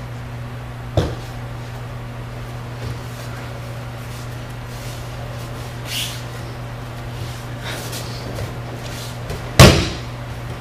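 A body thuds heavily onto a mat.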